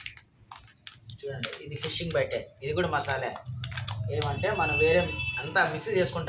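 A plastic bag of powder crinkles as it is squeezed.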